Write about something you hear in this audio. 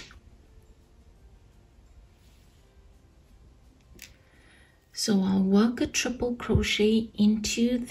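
A crochet hook softly draws yarn through stitches.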